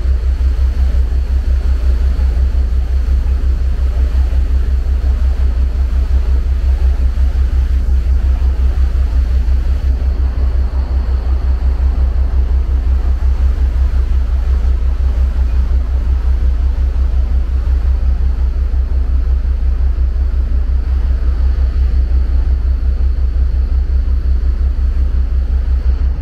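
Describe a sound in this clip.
Water rushes along a ship's hull.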